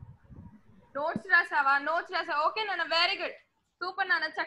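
A girl speaks up clearly close to a microphone.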